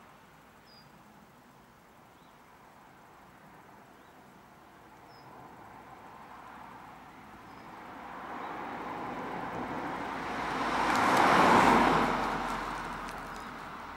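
A car approaches along a road, its engine and tyres growing louder, then passes close by and fades away.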